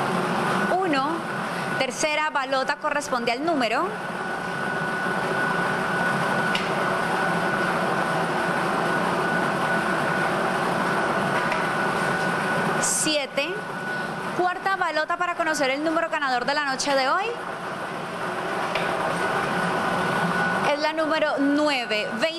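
A young woman announces through a handheld microphone.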